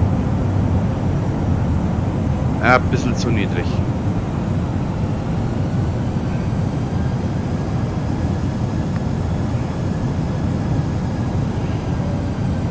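Jet engines roar in a low, steady drone.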